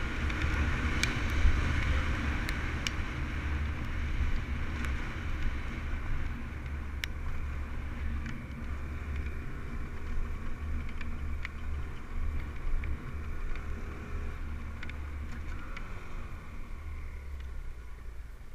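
Gravel and small stones tick and clatter against the bike.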